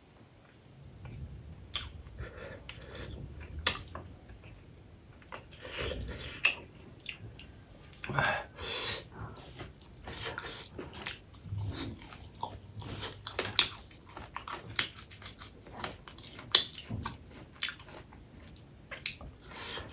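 Fingers squish and mix rice on a plate.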